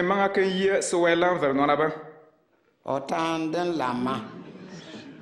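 A man reads out loudly and solemnly.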